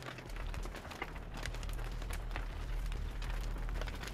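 A fire crackles in a barrel.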